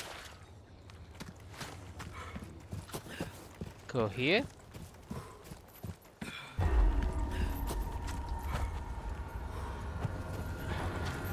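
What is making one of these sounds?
Footsteps crunch over dirt and gravel at a walking pace.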